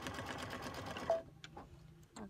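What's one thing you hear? A sewing machine gives a short beep as it stops.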